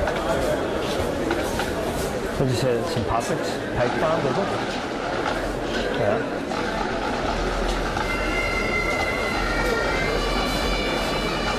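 A large outdoor crowd cheers and chatters steadily.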